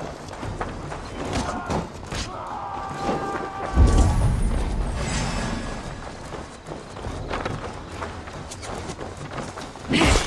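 Footsteps run over a dirt path.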